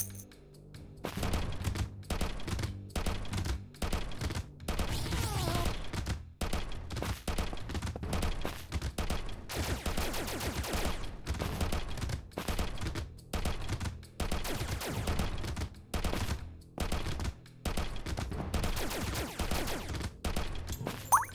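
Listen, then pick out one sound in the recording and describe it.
Rapid game gunfire blasts repeatedly.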